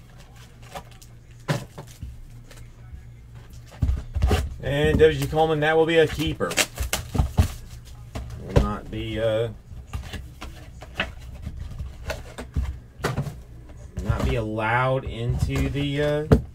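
Cardboard boxes rustle and tap as they are handled.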